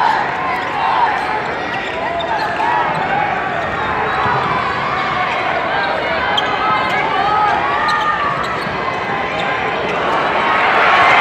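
Sneakers squeak on a hardwood court.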